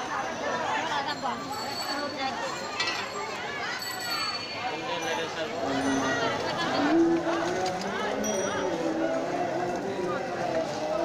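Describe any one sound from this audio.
A crowd of men and women chatters loudly all around outdoors.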